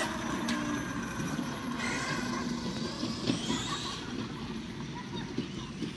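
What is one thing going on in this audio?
A small remote-control car whirs as it drives along the street.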